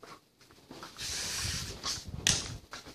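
Bare feet thump and slide on a padded mat.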